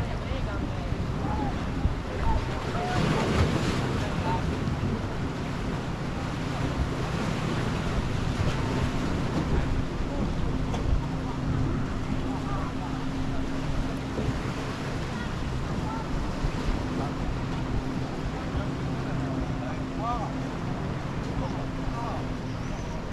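Waves wash and splash against rocks outdoors.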